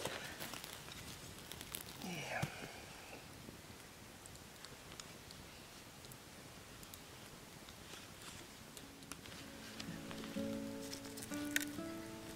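Wooden sticks knock and scrape together.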